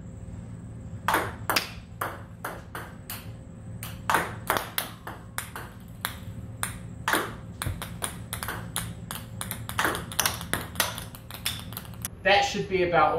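A ping pong ball bounces and clicks rapidly off a table and paddle.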